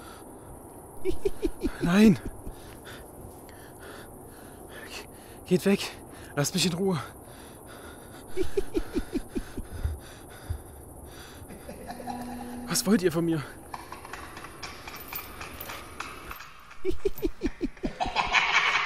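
A young man speaks in short, frightened bursts close by.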